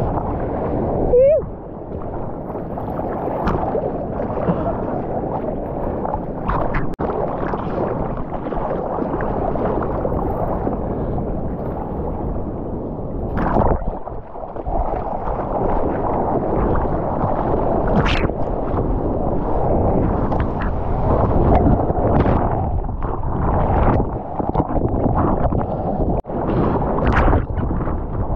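Seawater rushes and splashes against a moving surfboard.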